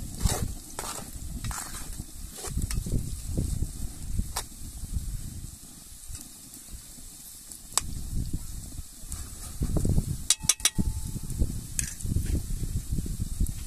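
A wood fire crackles.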